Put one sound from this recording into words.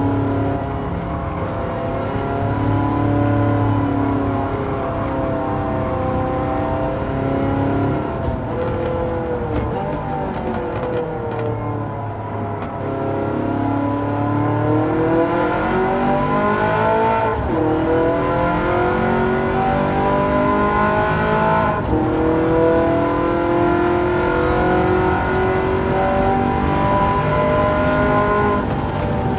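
A racing car engine roars loudly, its pitch rising and falling as the gears change.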